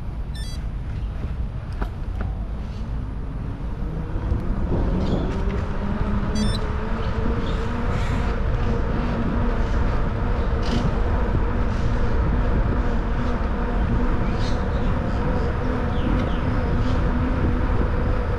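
Wind rumbles steadily over a moving bicycle outdoors.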